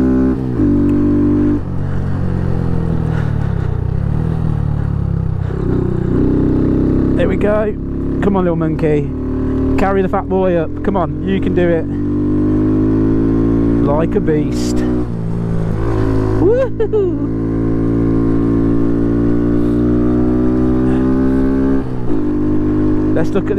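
A motorcycle engine hums steadily, rising and falling in pitch as it changes speed.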